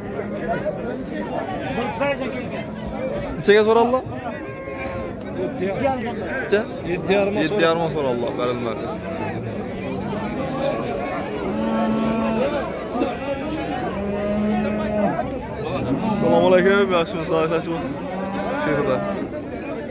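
A crowd of men talk and call out all around, outdoors.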